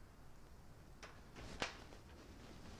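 A door latch clicks as a door opens.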